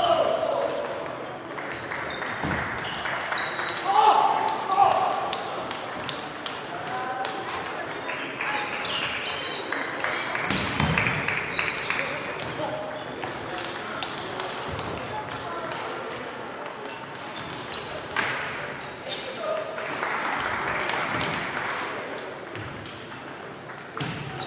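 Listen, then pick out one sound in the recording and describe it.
A crowd of players and onlookers chatter in the distance.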